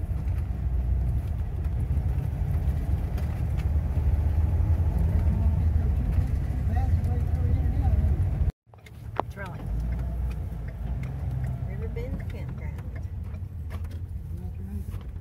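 A car's engine hums steadily as it drives along a road.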